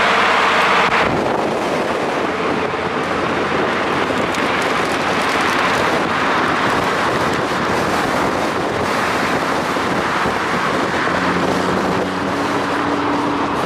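A sports car engine roars as the car speeds away.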